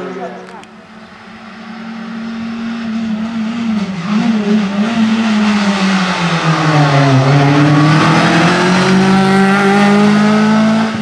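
A rally car engine revs hard and grows louder as the car approaches and roars past.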